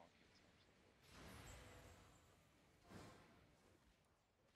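Magic spells whoosh and crackle in a chaotic battle.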